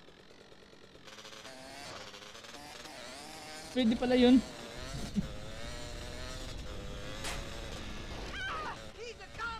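A motorbike engine revs and hums.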